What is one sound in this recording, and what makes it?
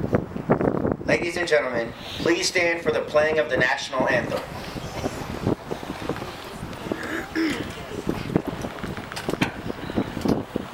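A brass band plays outdoors.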